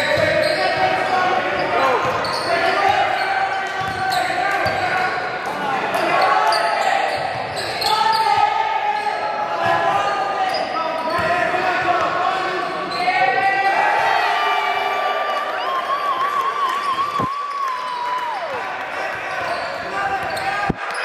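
Teenage boys call out to each other across the echoing gym.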